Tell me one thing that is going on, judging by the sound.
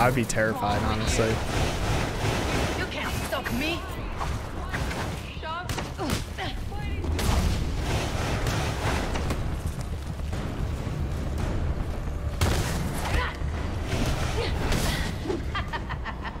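Punches and kicks thud in a fast fight.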